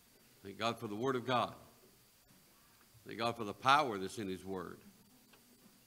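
A middle-aged man preaches with emphasis through a microphone in a large room.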